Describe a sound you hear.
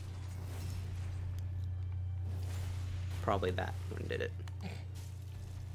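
A heavy sword clashes against armour.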